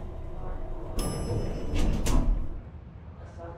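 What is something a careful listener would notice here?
An elevator rumbles and clanks as it starts to move.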